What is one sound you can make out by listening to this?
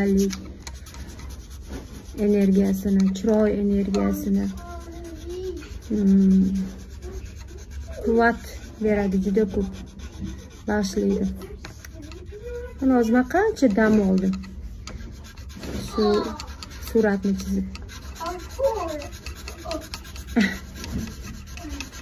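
A young woman speaks calmly and softly, close to a microphone.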